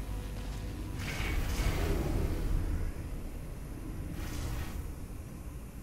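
A lift hums and clunks as it moves.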